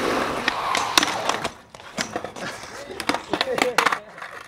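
A skateboard clatters as a skater falls.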